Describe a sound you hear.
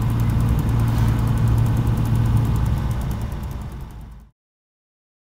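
A car engine hums steadily while driving, then fades out.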